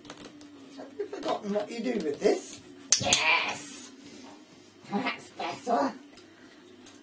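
A woman talks and laughs playfully close by.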